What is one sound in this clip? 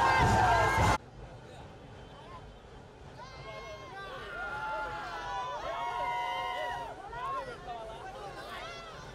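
A group of young men shouts and cheers nearby, heard more quietly.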